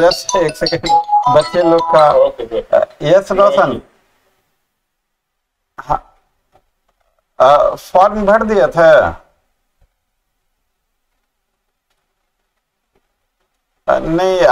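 A middle-aged man speaks on a phone in bursts, heard through a microphone.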